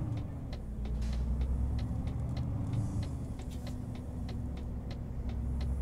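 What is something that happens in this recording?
A heavy truck engine rumbles steadily at low speed.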